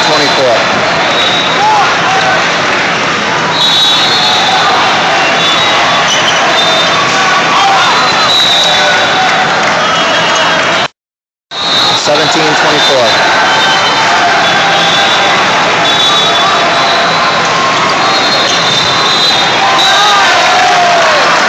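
A crowd of spectators and players chatters in a large echoing hall.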